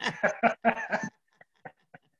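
A woman laughs heartily through an online call.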